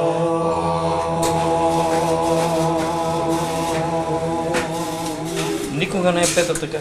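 A man sings a long, steady held note.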